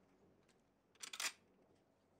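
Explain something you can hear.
A rifle magazine clicks sharply into place.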